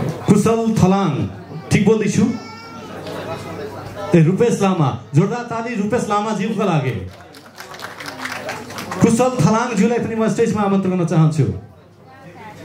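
A man speaks loudly and with animation through a loudspeaker in a large hall.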